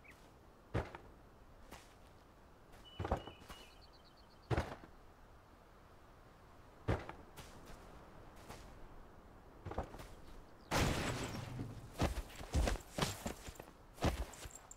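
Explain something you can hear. Roof tiles thud and clatter as they are placed one after another.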